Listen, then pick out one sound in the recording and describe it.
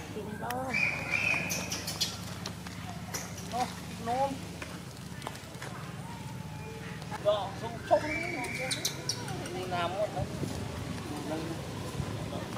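Young monkeys squeal and chatter.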